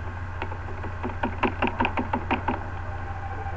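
Quick footsteps patter.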